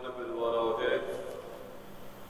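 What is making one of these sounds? An elderly man speaks in a slow chant through a microphone in a reverberant hall.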